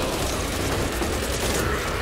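A gun fires rapid shots.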